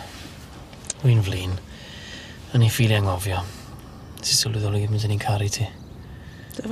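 A young man speaks softly and tenderly up close.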